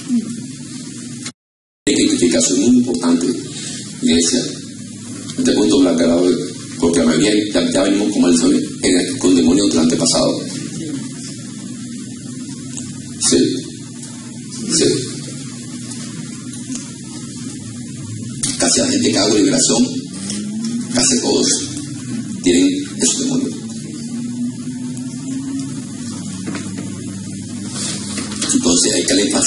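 A man preaches with animation into a microphone, heard through loudspeakers in an echoing hall.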